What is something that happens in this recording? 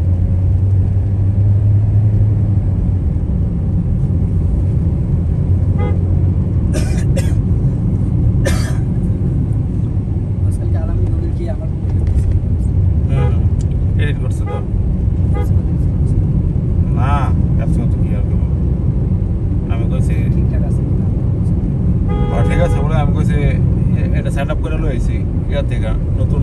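A car engine rumbles steadily.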